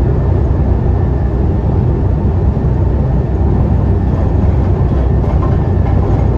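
A bus engine rumbles steadily from inside the cabin.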